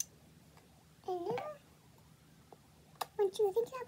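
A young girl speaks softly close by, in short bursts.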